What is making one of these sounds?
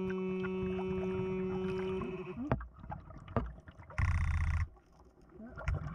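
A hand rake scrapes over gravel underwater.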